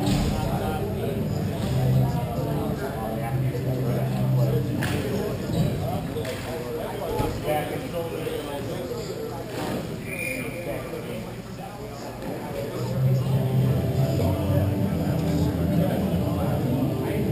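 Skates scrape faintly across ice in a large echoing arena.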